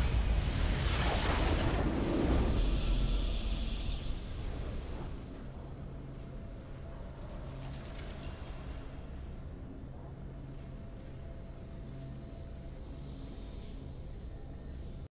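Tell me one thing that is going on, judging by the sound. A deep booming fanfare swells loudly and then fades into a low drone.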